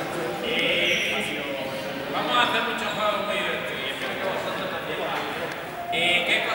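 A crowd of young men chatter and shout in a large echoing hall.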